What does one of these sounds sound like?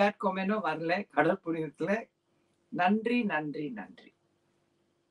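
A woman speaks warmly and with animation close to a microphone.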